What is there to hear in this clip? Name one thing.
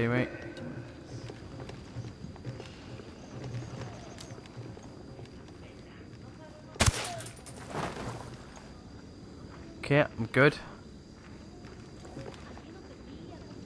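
Boots clang on metal stairs and grating.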